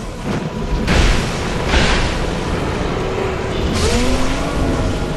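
Heavy blows land with loud crashing thuds.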